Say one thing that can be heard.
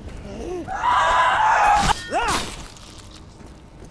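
A heavy blow lands with a thud.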